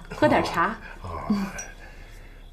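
An elderly man laughs softly nearby.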